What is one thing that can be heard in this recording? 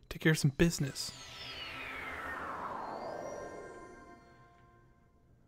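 A shimmering magical chime sweeps slowly downward and fades.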